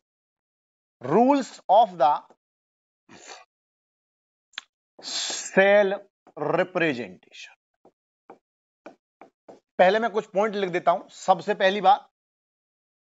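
A man speaks clearly and steadily, close to a microphone, in short phrases.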